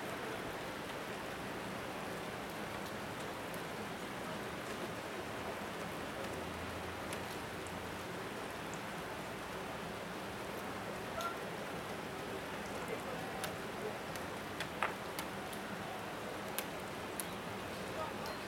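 Rain patters steadily outdoors.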